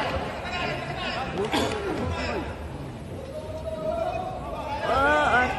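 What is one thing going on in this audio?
A crowd cheers and shouts in a large arena.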